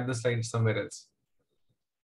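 A man speaks briefly through a microphone on an online call.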